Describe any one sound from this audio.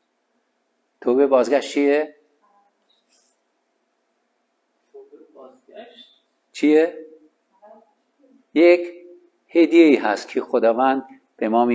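A man speaks with animation into a small microphone.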